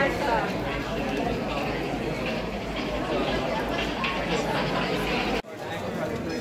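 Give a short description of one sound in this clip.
A crowd murmurs in a busy, echoing hall.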